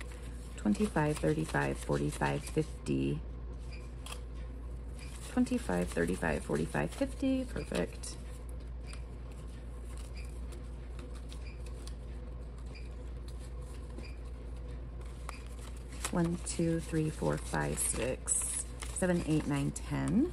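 Paper banknotes rustle and crinkle as they are handled and counted.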